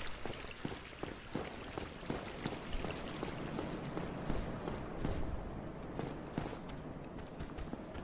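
Armoured footsteps clank on stone steps.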